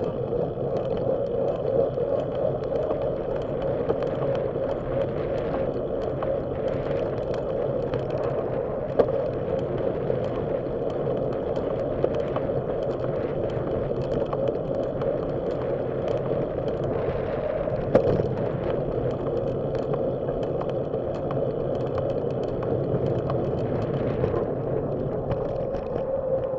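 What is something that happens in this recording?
Wind rushes steadily past the microphone.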